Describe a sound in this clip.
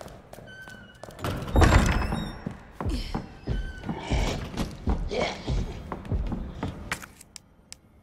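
Footsteps tread across a hard floor.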